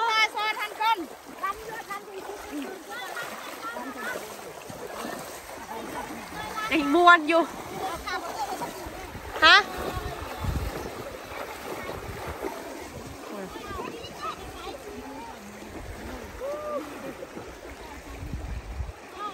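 A river rushes and gurgles over stones.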